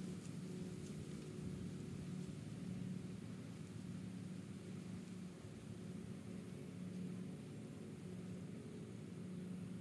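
A long wooden pole creaks.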